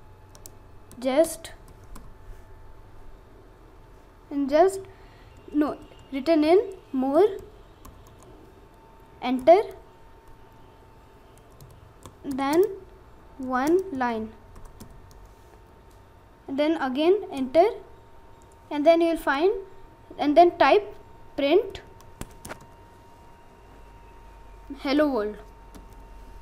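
A boy speaks slowly in short phrases close to a microphone.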